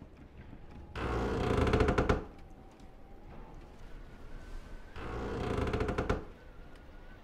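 A wooden door creaks as it swings open.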